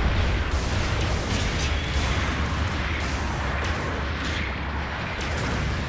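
Heavy metal footsteps thud on the ground.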